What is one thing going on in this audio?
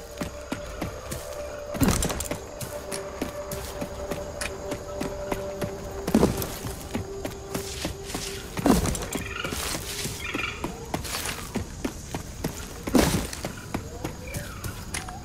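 Footsteps crunch through leafy undergrowth.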